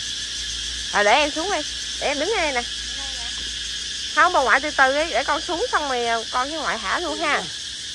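A small child squeals and babbles nearby.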